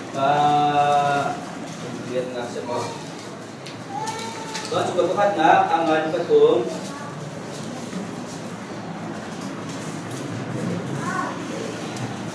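A man speaks aloud in a room with some echo.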